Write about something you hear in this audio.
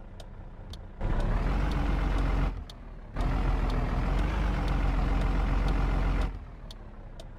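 A truck engine rumbles loudly, revving in bursts.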